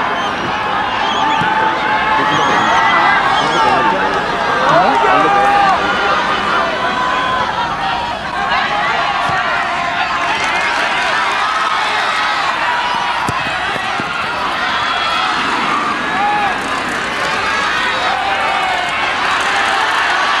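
A large crowd cheers and chatters loudly.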